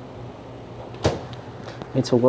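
A refrigerator door thuds shut.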